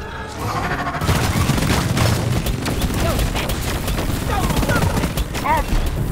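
A rapid-fire gun blasts in quick bursts.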